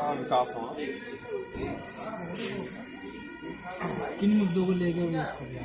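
A crowd of men murmurs in the background.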